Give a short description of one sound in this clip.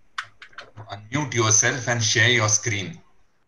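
A man speaks loudly and with animation through an online call.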